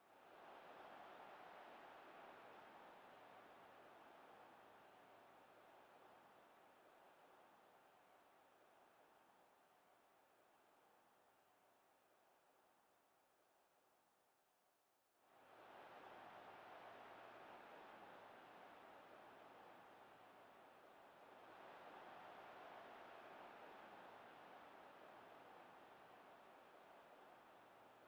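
A large stadium crowd roars steadily, fading and then surging loudly.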